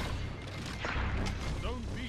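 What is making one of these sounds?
A heavy melee blow swooshes and thuds.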